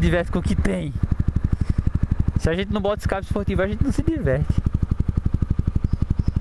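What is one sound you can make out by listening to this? A single-cylinder motorcycle engine thumps at low revs while coasting.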